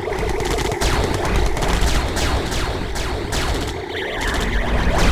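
Rapid gunfire and explosions crackle in a strategy game battle.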